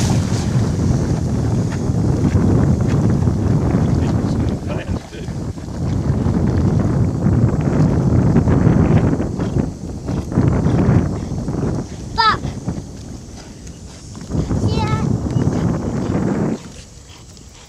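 A dog splashes and paddles through water.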